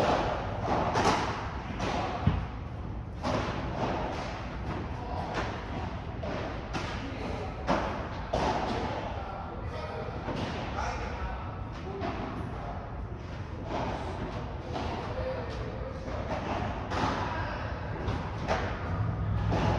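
A ball bounces on the court and off glass walls.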